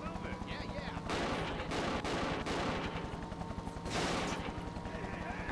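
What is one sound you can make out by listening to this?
Tyres skid and rumble over rough ground.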